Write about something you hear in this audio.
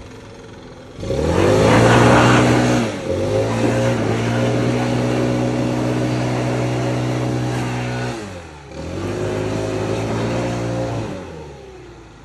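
A leaf blower engine roars close by, revving up and down.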